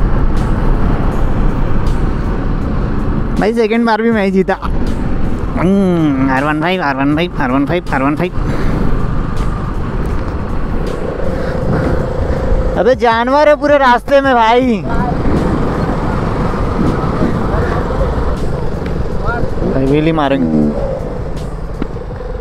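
Wind roars steadily past a moving motorcycle.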